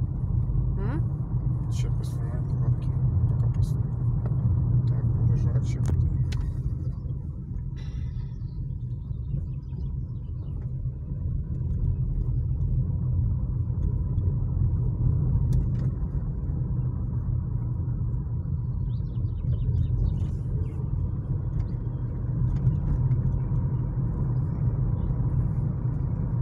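Tyres roll and rumble on the road surface.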